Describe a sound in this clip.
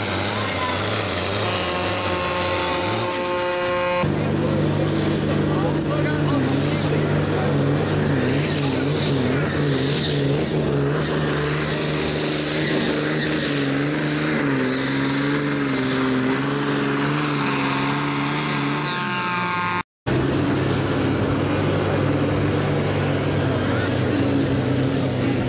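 A pulling tractor's diesel engine roars at full throttle under heavy load.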